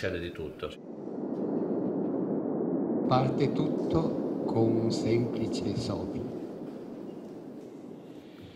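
A woman blows a long breath.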